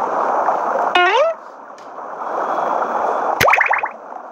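Bubbles bubble up through water.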